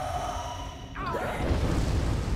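A fiery explosion bursts with a deep booming roar.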